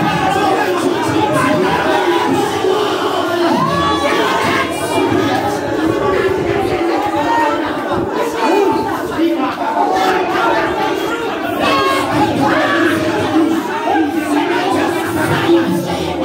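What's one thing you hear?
A woman prays aloud fervently, crying out close by.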